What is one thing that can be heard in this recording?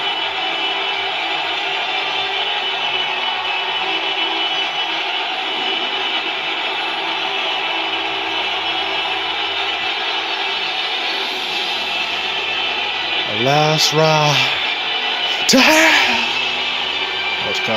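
A crowd roars steadily through a television speaker.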